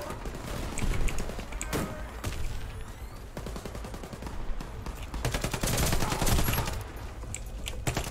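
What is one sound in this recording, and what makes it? Keyboard keys click and clatter rapidly.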